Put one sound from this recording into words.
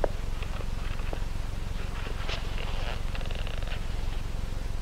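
Heeled footsteps tap on a hard floor.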